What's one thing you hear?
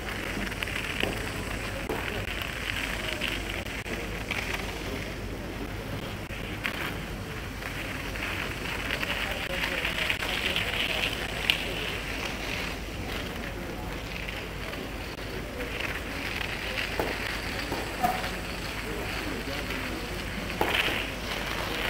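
A tennis ball is struck with sharp pops.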